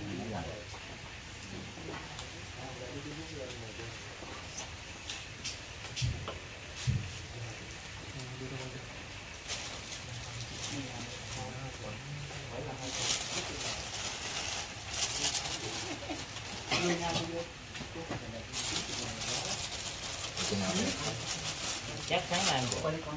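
Men and women talk casually nearby.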